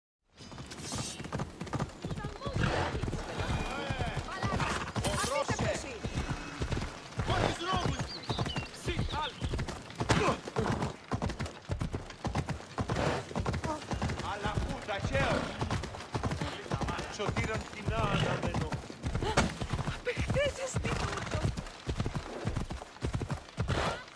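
Horse hooves clop rapidly along the ground at a gallop.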